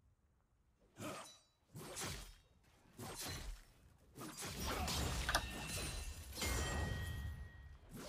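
Fighting sound effects from a video game burst and clash loudly.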